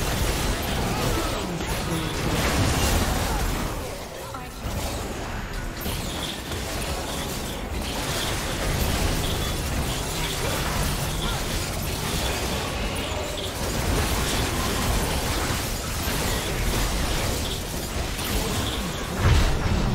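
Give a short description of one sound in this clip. Spell effects and blows crackle and clash in a game battle.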